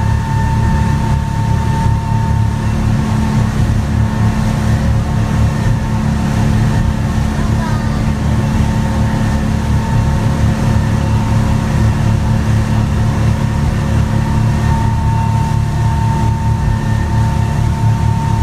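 Water rushes and splashes against a boat's hull.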